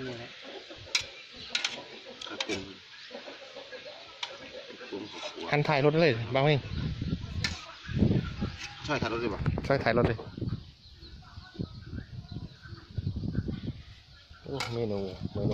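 A metal spoon clinks against a pot.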